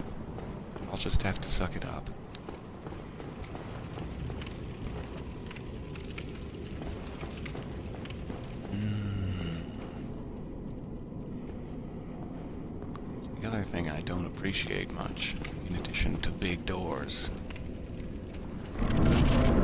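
Armored footsteps thud and clank on stone.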